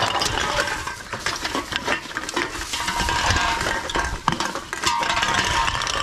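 Empty aluminium cans clink and rattle against each other.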